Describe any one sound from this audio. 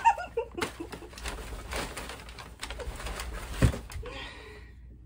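A large plush toy rustles and swishes against clothing as it is hugged and swung around.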